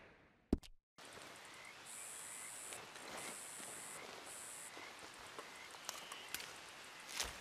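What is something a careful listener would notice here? Leafy plants rustle as they are picked by hand.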